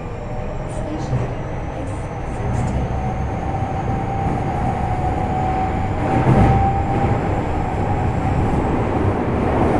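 An idling electric train hums steadily and low.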